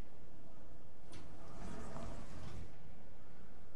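Elevator doors slide open.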